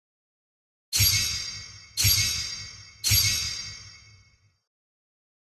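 Bright game chimes ring three times in a row, each fading away.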